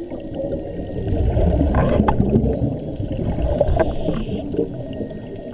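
Air bubbles fizz and churn in water up close.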